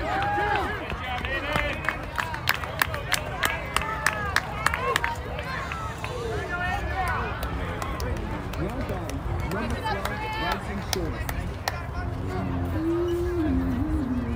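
Young players shout and cheer across an open field outdoors.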